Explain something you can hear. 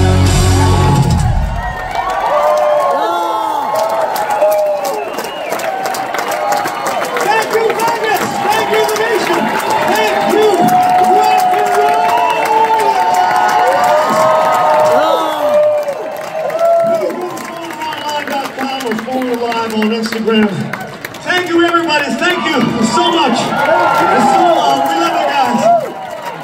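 A rock band plays electric guitars loudly.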